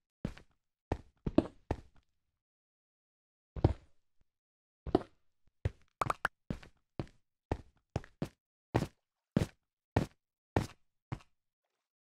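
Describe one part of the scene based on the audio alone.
A pickaxe chips at stone.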